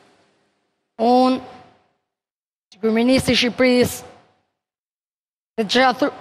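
A boy speaks loudly into a microphone in short bursts, in a reverberant hall.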